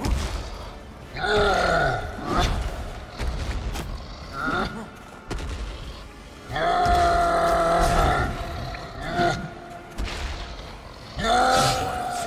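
A sword swishes and strikes.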